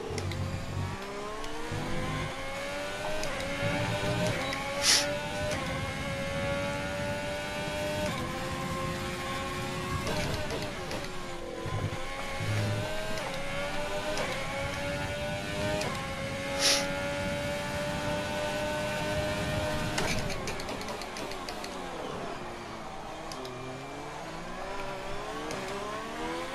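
A racing car engine screams close by, rising in pitch and dropping sharply with each gear change.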